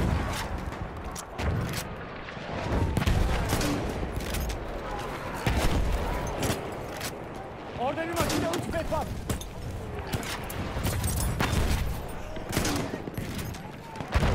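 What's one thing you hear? Gunshots crack repeatedly nearby and far off.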